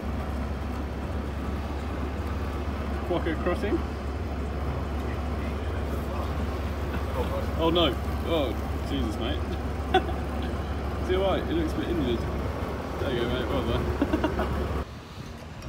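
A bus engine hums steadily nearby.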